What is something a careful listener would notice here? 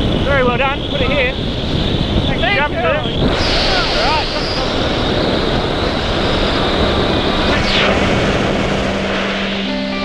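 Strong wind roars and buffets loudly throughout.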